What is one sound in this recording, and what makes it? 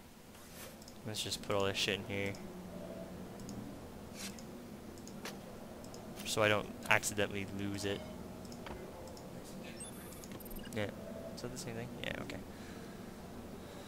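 Soft interface clicks sound as items are moved between slots.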